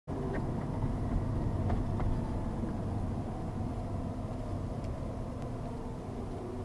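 A car's engine hums low and steady while driving.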